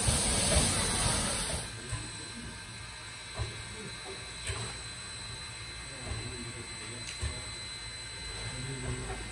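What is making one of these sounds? A steam locomotive hisses loudly as it vents steam.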